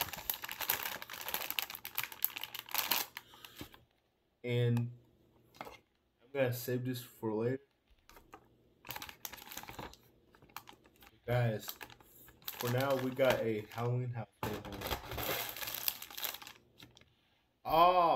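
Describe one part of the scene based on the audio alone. Plastic rattles and clicks as hands handle a small lantern.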